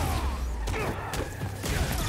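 A fiery explosion bursts with a loud boom.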